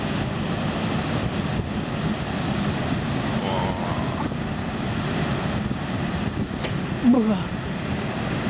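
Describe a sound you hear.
Heavy waves crash and roar against rocks.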